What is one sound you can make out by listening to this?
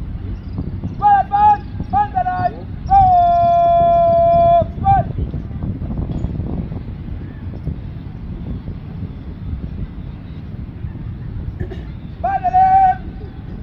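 A man shouts drill commands loudly outdoors, drawing out some words in long calls.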